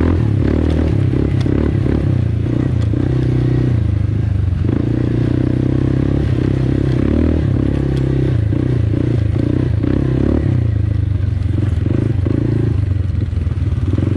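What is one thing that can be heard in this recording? Tyres crunch over sand and bumps.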